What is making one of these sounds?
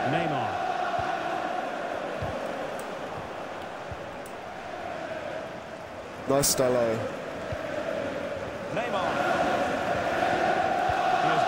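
A large stadium crowd roars and chants steadily throughout.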